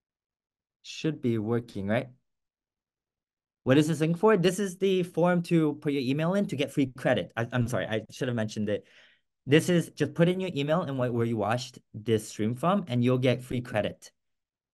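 A young man speaks calmly through an online call, with pauses.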